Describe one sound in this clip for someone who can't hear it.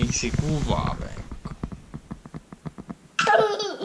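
A young boy giggles close by.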